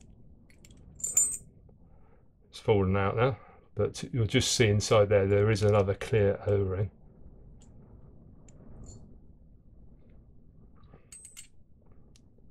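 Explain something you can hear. Small metal parts click and scrape against each other.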